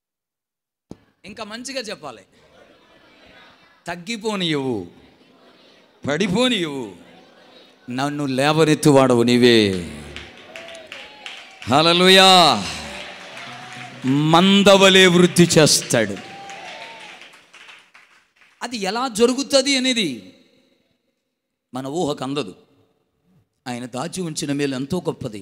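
A man preaches with passion into a microphone, his voice ringing through a loudspeaker with an echo.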